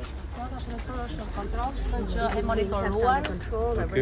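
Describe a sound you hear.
A middle-aged woman speaks with animation close by.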